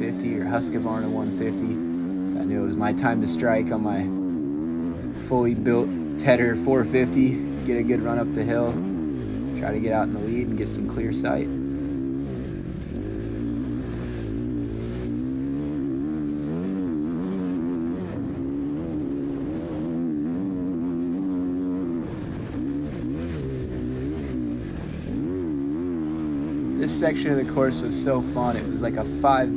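A dirt bike engine revs and roars up and down close by.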